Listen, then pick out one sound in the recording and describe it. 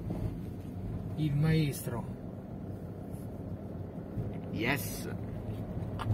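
A vehicle's engine rumbles steadily from inside the cabin.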